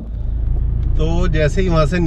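A man speaks calmly up close inside a car.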